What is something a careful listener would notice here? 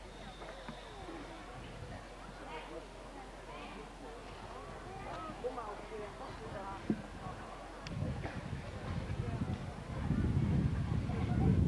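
A crowd of men and women murmurs and chatters outdoors.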